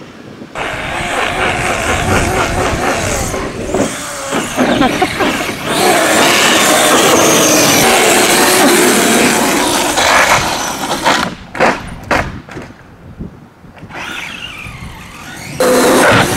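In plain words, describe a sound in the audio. A small electric motor whines as a radio-controlled truck speeds over pavement.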